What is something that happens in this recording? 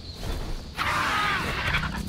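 Large wings flap with heavy whooshes.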